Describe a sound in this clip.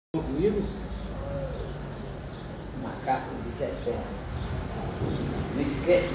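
An elderly man speaks with animation nearby.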